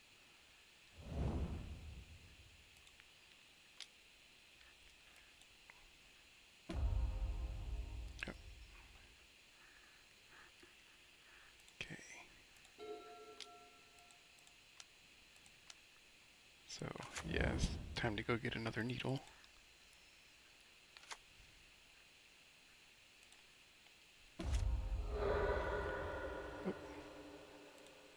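Short computer game sound effects chime and swoosh now and then.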